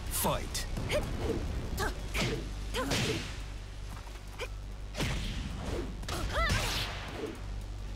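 Punches and kicks land with sharp, heavy thuds.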